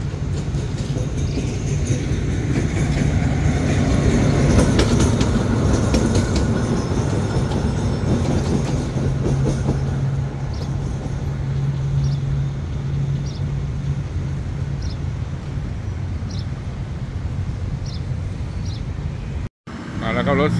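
A diesel locomotive engine rumbles steadily as it rolls past.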